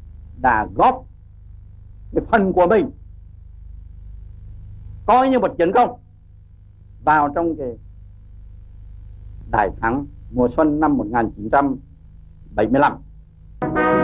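An elderly man speaks slowly and forcefully in short phrases, heard through a microphone with a low hum behind.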